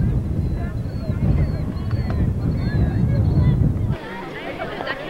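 Wind rumbles loudly against a microphone outdoors.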